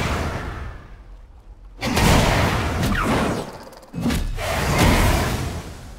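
Magic spells whoosh and crackle in a game fight.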